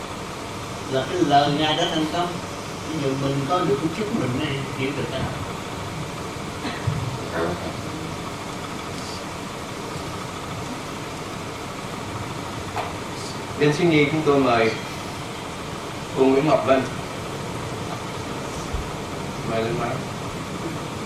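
An older man speaks calmly into a microphone, with long pauses.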